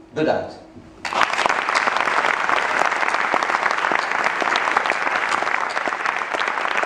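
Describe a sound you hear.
A man claps his hands among loud applause.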